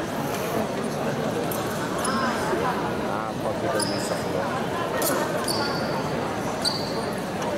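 Footsteps stamp on a metal fencing strip.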